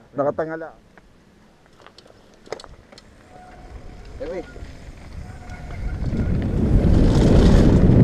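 Bike tyres rattle over a rough dirt trail.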